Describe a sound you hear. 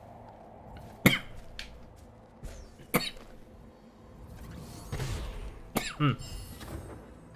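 Sharp magical whooshes sound as a small creature dashes and leaps.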